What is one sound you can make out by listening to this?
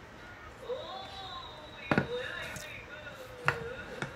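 A wooden board thumps down onto a wooden floor.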